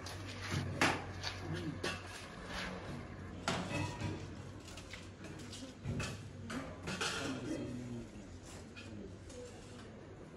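Metal bowls clink as they are set down on a metal table.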